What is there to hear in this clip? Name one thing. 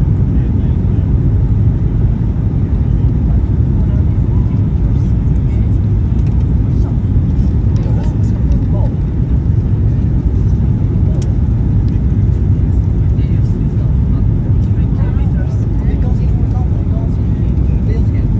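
A jet engine roars steadily with a deep rumble.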